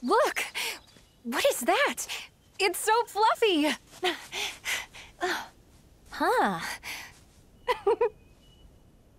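A young woman speaks with lively excitement through a microphone.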